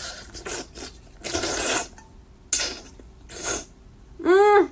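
A young woman slurps noodles loudly and close up.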